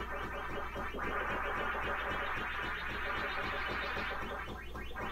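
A video game sounds a fast, rising warble.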